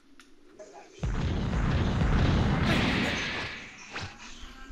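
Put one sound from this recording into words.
A fighter flies in with a loud rushing whoosh.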